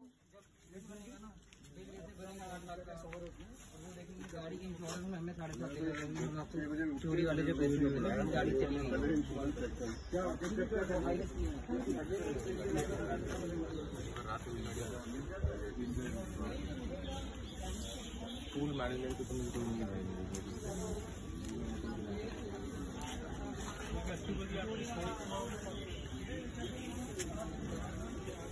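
Several men and women talk excitedly nearby, outdoors.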